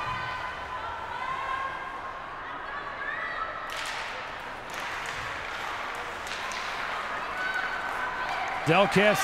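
A crowd of spectators murmurs in an echoing rink.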